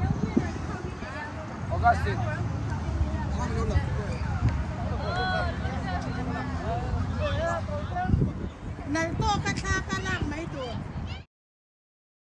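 People chat nearby outdoors.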